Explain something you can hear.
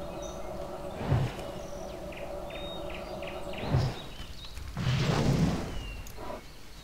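A magic spell crackles and bursts with a rushing whoosh.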